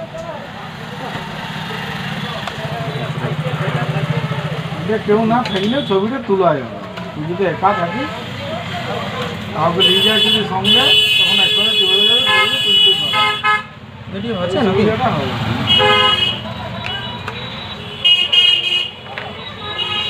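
A plastic case clicks and rattles as hands handle it.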